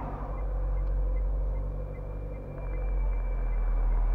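A car drives toward you on the road.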